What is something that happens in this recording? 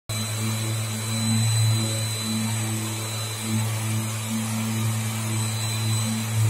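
An orbital sander whirs steadily against a metal car door.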